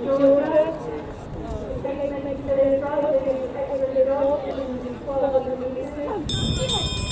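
A man calls out loudly nearby.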